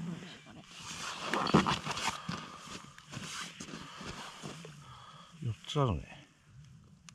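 Paper crinkles and tears close by.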